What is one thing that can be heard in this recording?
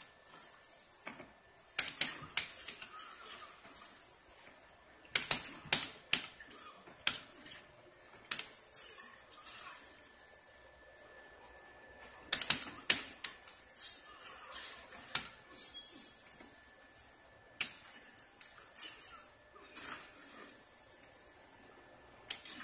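A joystick rattles as it is pushed around.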